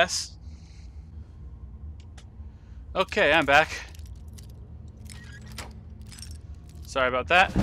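Metal lock pins click and scrape faintly.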